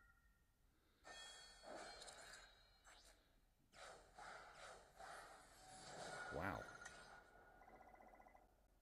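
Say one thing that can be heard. Bright electronic chimes and whooshes play as an upgrade completes.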